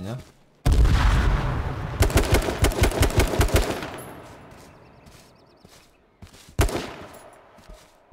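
Gunshots fire in loud, rapid bursts and echo away.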